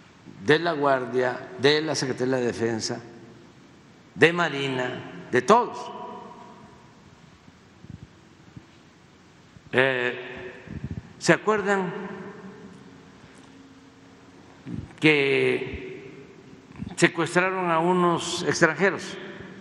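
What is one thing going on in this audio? An elderly man speaks calmly into a microphone, with pauses, in a room with a slight echo.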